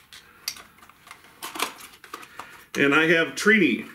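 Plastic packaging crinkles and rustles as hands open it.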